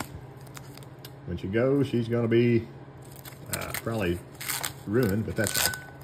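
Masking tape peels and crackles off a metal surface.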